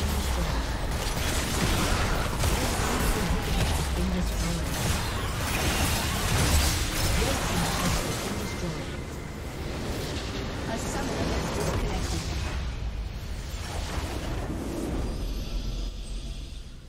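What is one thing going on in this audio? Magic blasts, clashes and impacts crash in a hectic fantasy battle.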